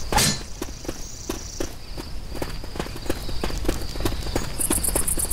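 Footsteps run quickly over hard pavement.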